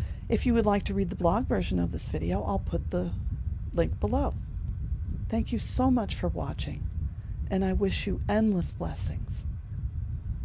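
A middle-aged woman speaks calmly and closely into a microphone.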